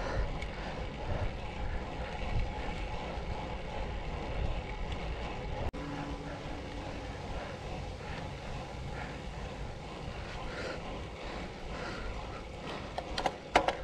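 Wind rushes past a moving bicycle.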